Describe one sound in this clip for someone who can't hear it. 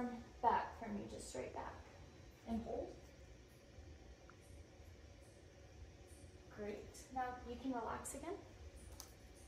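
A young woman speaks calmly and instructively nearby.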